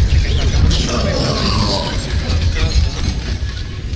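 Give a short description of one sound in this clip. Loud blasts boom.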